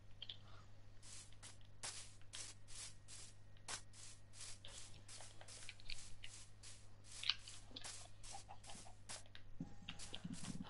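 Footsteps pad steadily across grass.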